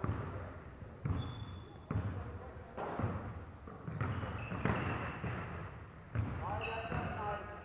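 Sounds echo around a large indoor hall.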